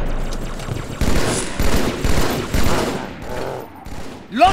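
A rifle fires short bursts.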